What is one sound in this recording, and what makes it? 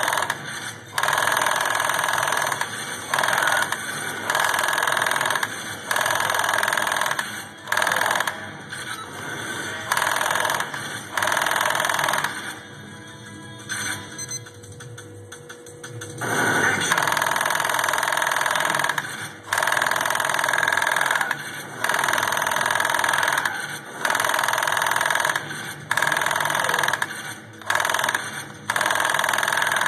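Video game gunfire and explosions blare in bursts from a television speaker.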